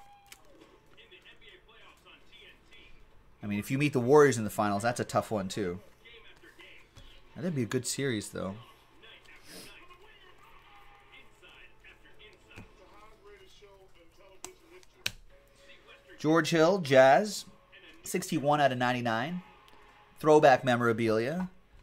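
Trading cards rustle and slide in hands.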